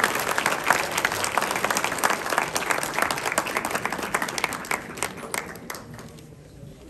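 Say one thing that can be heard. A large crowd applauds in an echoing hall, then the clapping dies away.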